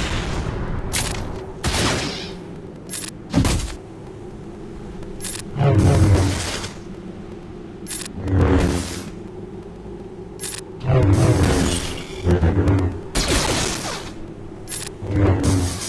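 Blasters fire in quick zapping shots.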